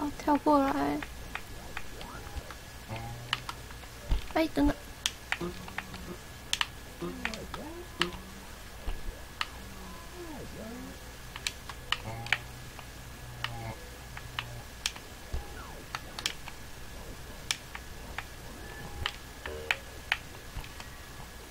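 Short electronic game sounds click and chirp as a small figure jumps.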